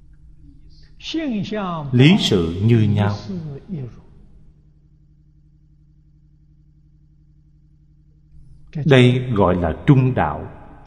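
An elderly man speaks calmly into a close microphone.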